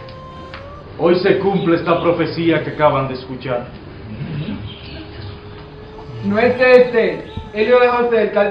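A man speaks loudly and dramatically.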